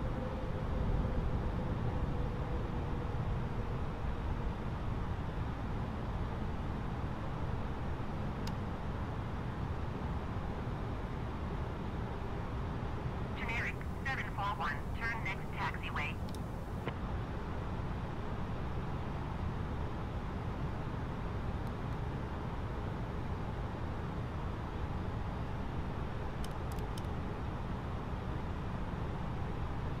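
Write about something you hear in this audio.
Jet engines drone steadily with a low rumble of rushing air.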